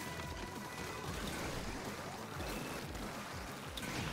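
A toy-like blaster sprays liquid in quick bursts.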